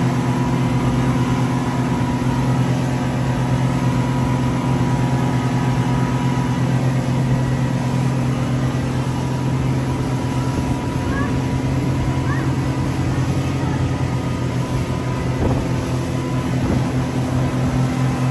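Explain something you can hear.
Boat engines drone steadily at high speed.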